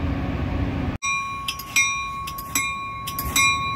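A train passes close by.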